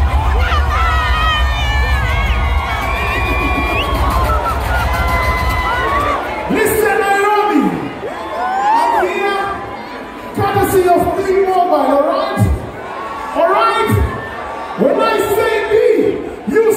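A crowd cheers and screams loudly outdoors.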